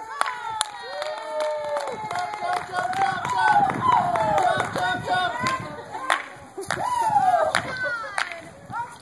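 Young children shout and cheer excitedly outdoors.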